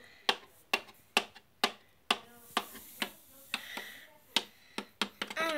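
A small plastic toy taps step by step down hard stairs.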